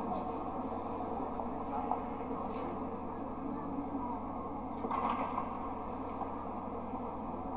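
Flames roar loudly, heard through a television loudspeaker.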